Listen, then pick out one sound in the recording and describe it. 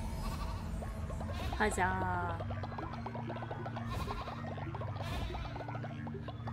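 Fast electronic game music plays with quick, bright notes.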